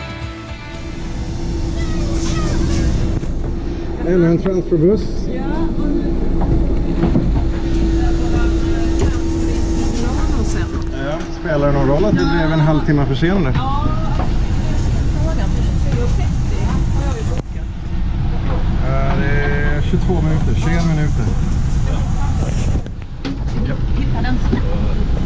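A bus engine rumbles low and steadily.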